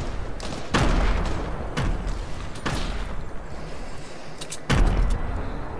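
Gunshots ring out at intervals, each with a short echo.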